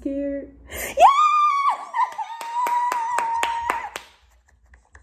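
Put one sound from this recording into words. A young woman cries out and squeals excitedly close by.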